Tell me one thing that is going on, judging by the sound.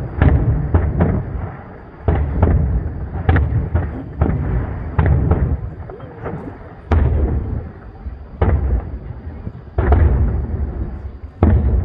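Fireworks burst with loud booms that echo and rumble away.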